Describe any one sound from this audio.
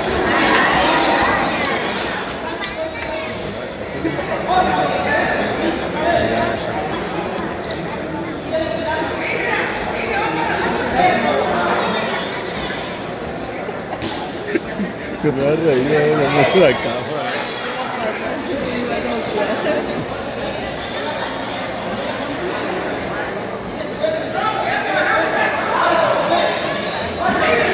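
A crowd of spectators chatters and cheers loudly in an echoing hall.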